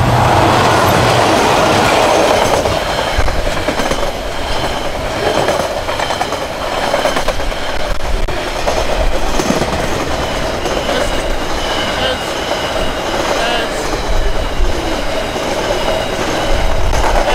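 A long freight train rumbles and clatters past close by.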